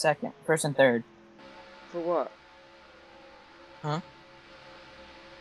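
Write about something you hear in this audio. Race car engines hum steadily.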